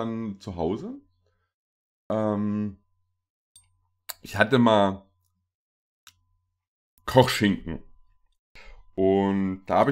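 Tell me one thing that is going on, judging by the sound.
A young man talks with animation, close to a microphone, in short bursts.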